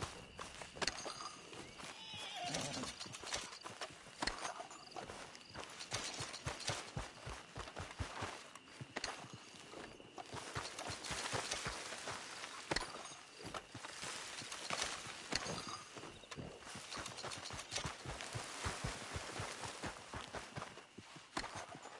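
Footsteps crunch through dry brush.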